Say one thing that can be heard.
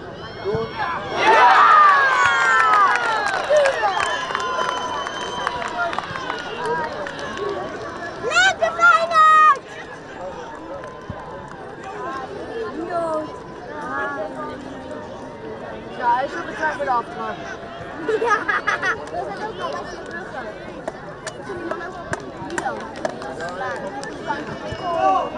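Young players cheer and shout loudly outdoors.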